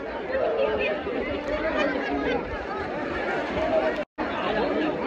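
Water splashes around people wading in a pool.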